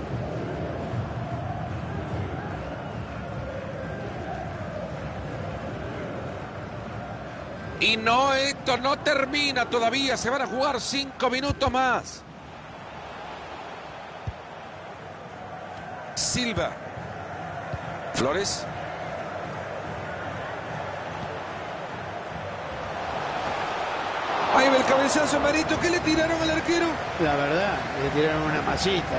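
A stadium crowd murmurs and cheers steadily, swelling near the end.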